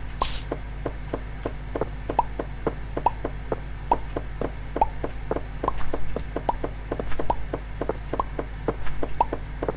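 A pickaxe chips at stone in a quick, steady rhythm.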